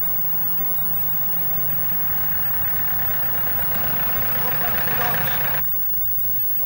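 A minibus engine rumbles as it pulls up.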